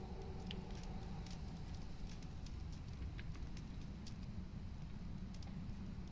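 Torch flames crackle softly.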